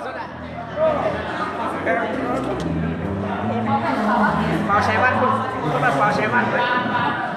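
Young people sing together into a microphone, heard through loudspeakers.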